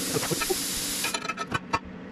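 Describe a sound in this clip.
A cutting tool roars against metal, hissing loudly.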